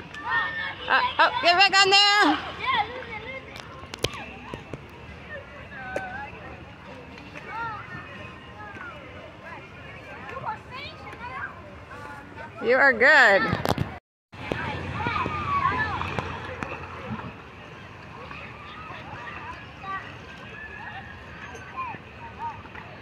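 Children shout and scream with excitement outdoors.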